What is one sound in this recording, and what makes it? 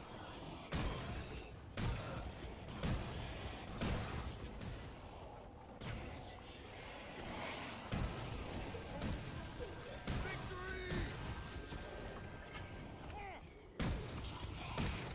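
Gunshots fire in sharp single blasts.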